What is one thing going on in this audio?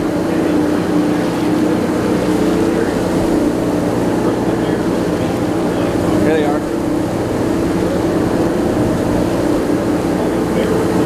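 Water splashes and laps against a boat.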